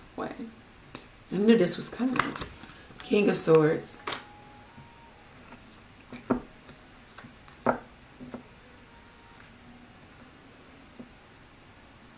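Playing cards shuffle and slap together.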